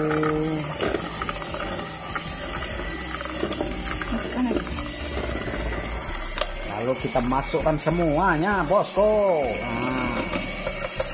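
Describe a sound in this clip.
An electric hand mixer whirs steadily as its beaters churn batter.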